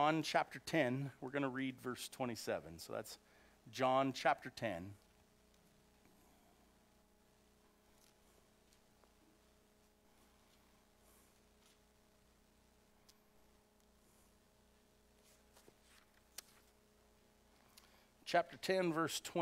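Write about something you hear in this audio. A middle-aged man speaks calmly through a microphone, pausing for a long stretch.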